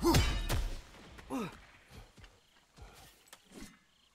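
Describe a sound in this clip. Heavy footsteps tread on soft ground.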